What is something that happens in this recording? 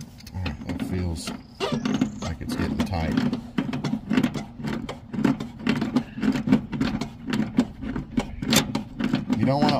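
A metal wrench clinks against brass pipe fittings.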